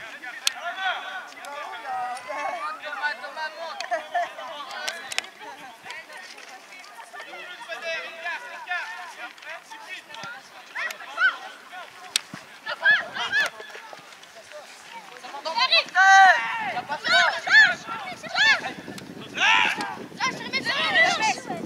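Men and women talk and call out close by outdoors.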